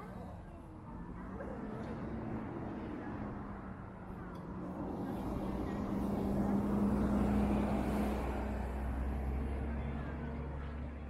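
A crowd murmurs in a busy open square outdoors.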